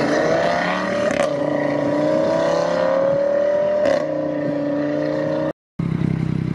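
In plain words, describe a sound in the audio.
A car engine roars loudly as the car accelerates away.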